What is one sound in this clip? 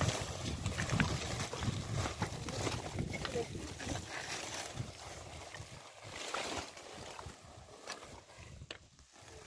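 A plastic tarp rustles and crinkles as it is handled.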